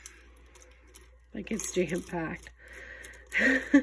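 Dried spices rustle and scrape as fingers pull them out of a glass jar.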